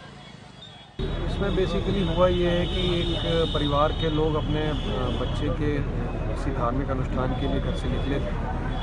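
A middle-aged man speaks calmly and steadily, close by.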